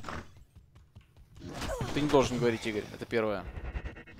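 Magic spells crackle and burst as game figures fight.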